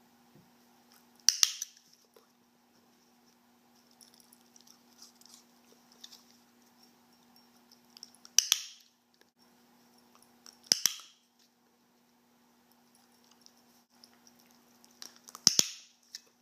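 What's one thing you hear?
A dog's teeth tap on a plastic pill bottle.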